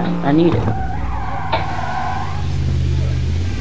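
Tyres screech as a car skids through a turn.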